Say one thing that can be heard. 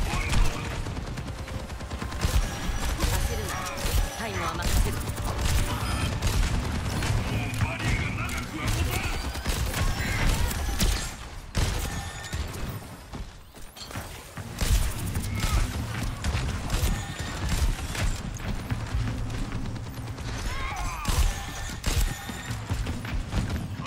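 Rapid gunfire from a game rattles in bursts.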